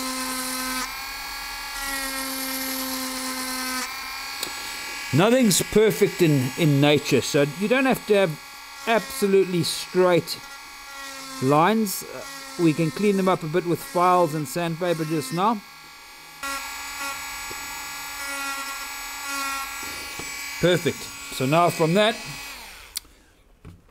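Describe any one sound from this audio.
A small rotary engraving tool whines steadily.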